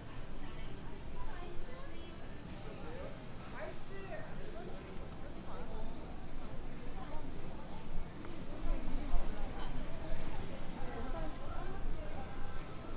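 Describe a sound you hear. Distant voices of passers-by chatter in the street.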